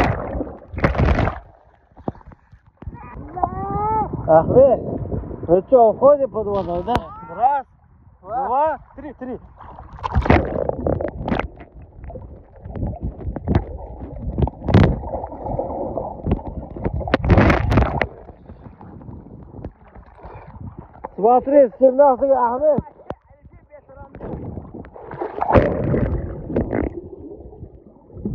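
Water splashes and bubbles loudly up close.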